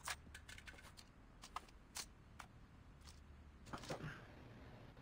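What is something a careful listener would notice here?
Footsteps tap quickly on hard pavement.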